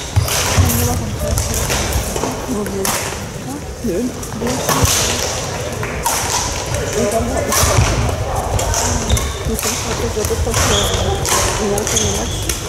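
A crowd of men and women chatter in the background.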